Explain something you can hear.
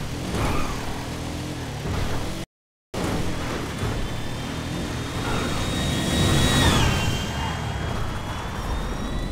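A car engine roars and revs steadily at high speed.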